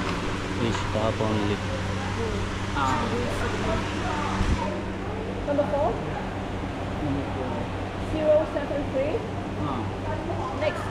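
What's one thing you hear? A woman talks nearby in a relaxed way.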